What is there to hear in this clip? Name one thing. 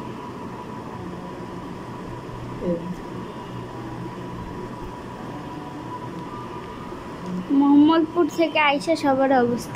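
Fingers peel and crack shells.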